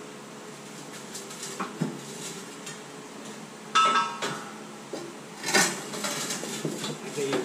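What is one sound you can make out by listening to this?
A heavy metal machine creaks and clanks as it is pried with a steel bar.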